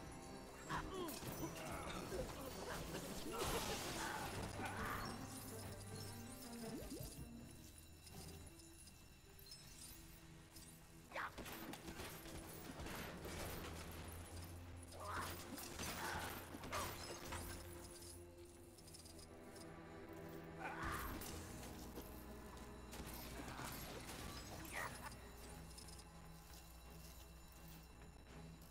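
Video game music plays steadily.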